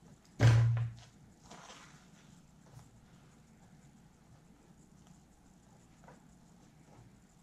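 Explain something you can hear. Fabric rustles softly as hands handle it.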